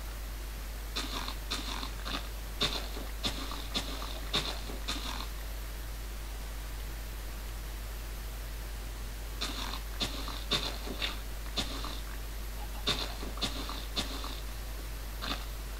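A shovel digs into dirt with quick, repeated crunching thuds.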